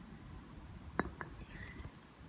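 A small object knocks down onto pavement.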